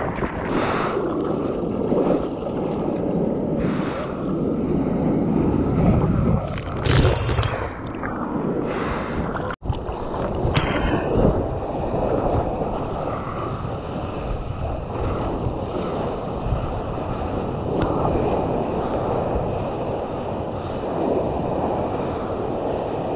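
Water sloshes and splashes against a surfboard outdoors.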